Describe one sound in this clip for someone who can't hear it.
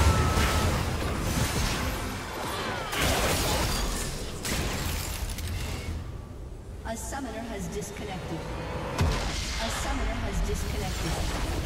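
Magic blasts crackle and burst in a fast video game battle.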